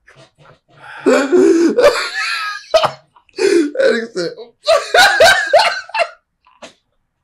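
Two men laugh loudly close by.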